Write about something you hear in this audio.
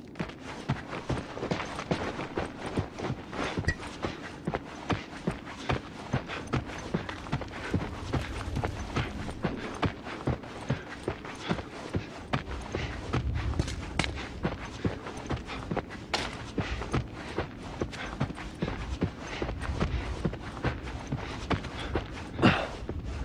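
Footsteps walk across a debris-strewn floor.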